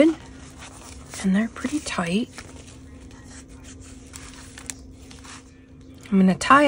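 Paper rustles softly as it is handled.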